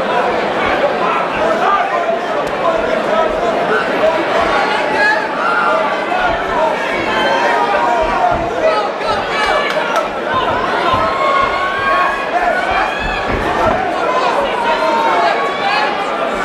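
A crowd of men and women shouts and cheers in a large hall.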